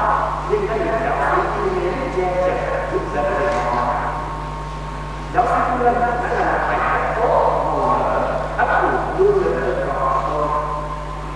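A young man speaks calmly into a microphone, heard through loudspeakers.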